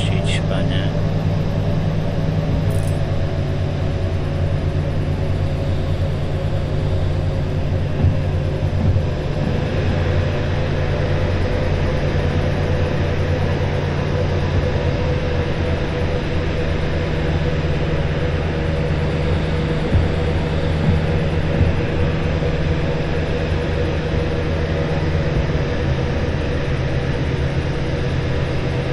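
A diesel locomotive engine rumbles, heard from inside the cab.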